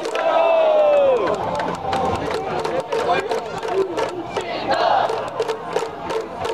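A large crowd chants and cheers outdoors in a stadium.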